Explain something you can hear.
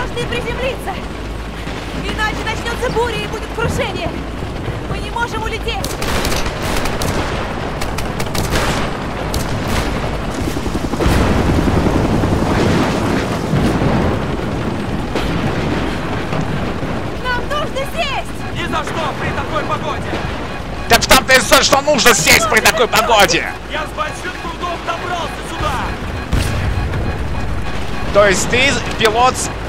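A young woman speaks with alarm close by.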